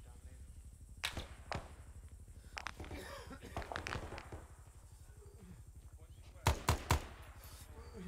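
Rifle shots crack sharply in short bursts.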